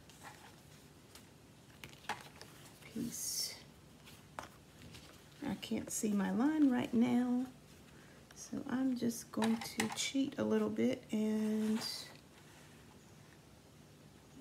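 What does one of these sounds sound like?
Sheets of paper rustle and slide as they are handled.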